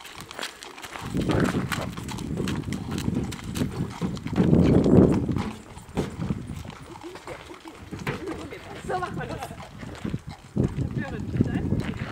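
Hooves clop and thud on a hollow ramp.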